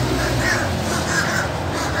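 A crow flaps its wings in take-off.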